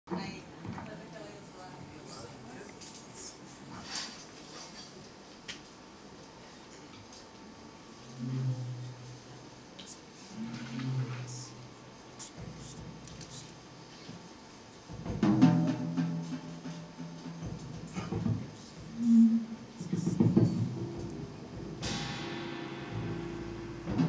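A drummer taps cymbals lightly.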